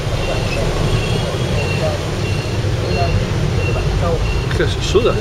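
A car engine rumbles low and steady from inside the vehicle.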